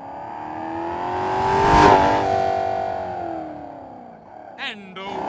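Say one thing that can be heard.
A car engine roars past and fades away.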